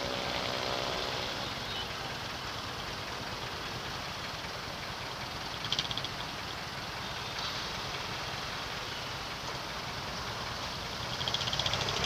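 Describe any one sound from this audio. Motorcycle engines idle nearby in traffic.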